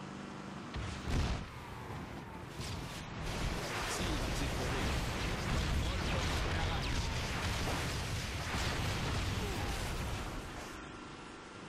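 Gunfire and explosions crackle and boom.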